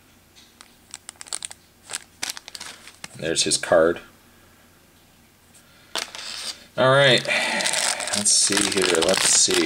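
A plastic bag crinkles and rustles in a hand.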